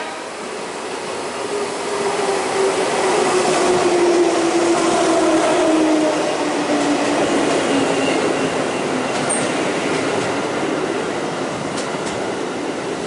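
A train's motor whines and drops in pitch as it slows past.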